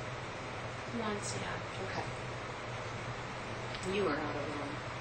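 A woman speaks.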